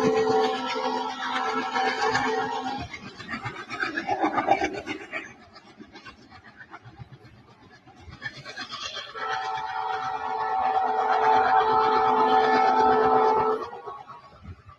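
A train horn blows loudly in long steady blasts.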